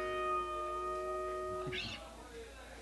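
An electric guitar chord rings out and stops.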